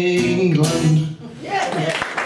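An acoustic guitar rings out with a last strum.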